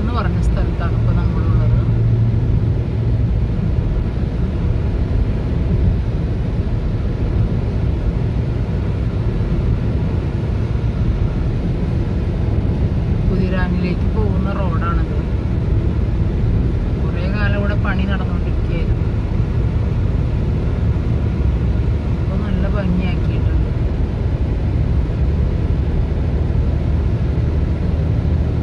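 A car engine hums and tyres roll steadily on smooth pavement.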